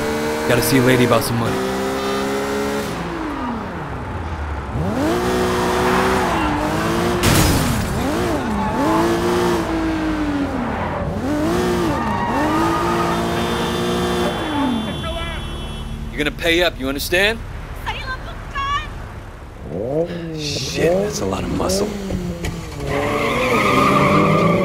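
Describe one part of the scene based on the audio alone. A car engine revs up and down as a car speeds along.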